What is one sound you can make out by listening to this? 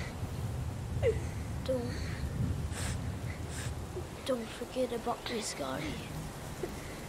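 A boy speaks in a strained, pleading voice, close by.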